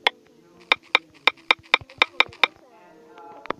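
Keyboard taps click quickly, one after another.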